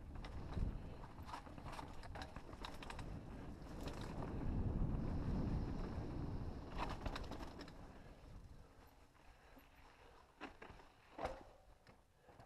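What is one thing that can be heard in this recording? Bike tyres crunch and rattle over a dry dirt trail.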